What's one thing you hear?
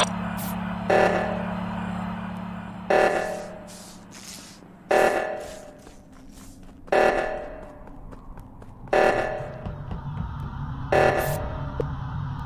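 A game alarm blares in short bursts every two seconds.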